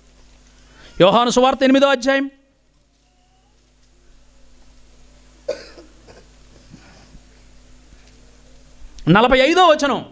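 A man recites with feeling through a microphone.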